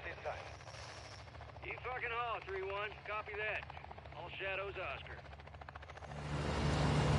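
A helicopter's rotor thumps steadily in the distance.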